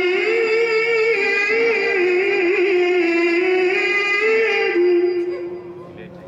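A man chants in a long, wavering melody through a microphone in a large echoing hall.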